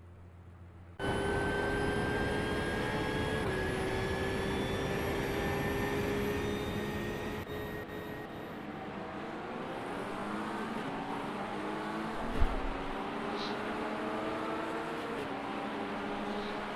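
Racing car engines roar and whine as the cars speed along.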